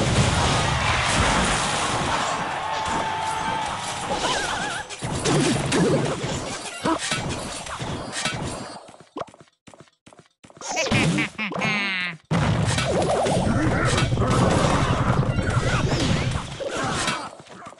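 Game sound effects chime and clash.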